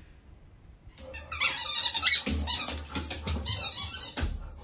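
A dog's claws patter and scrabble quickly across a hard floor.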